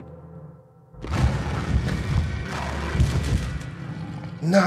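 A monster growls and roars loudly.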